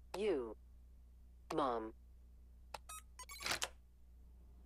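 Electronic keypad beeps sound as buttons are pressed.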